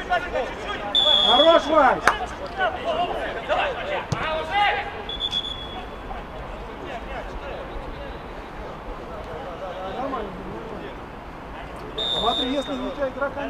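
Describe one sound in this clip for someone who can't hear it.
A referee's whistle blows short and shrill.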